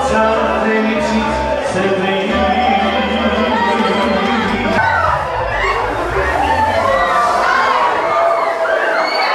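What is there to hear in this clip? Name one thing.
Loud music with a heavy beat plays through loudspeakers.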